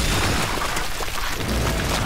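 A chainsaw engine roars and revs.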